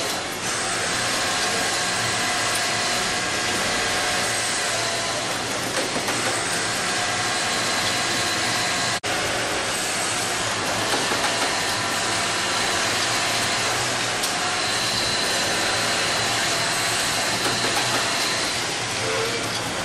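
Sewing machines hum steadily.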